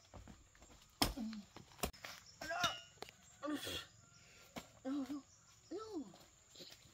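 A blade chops into soil with dull thuds.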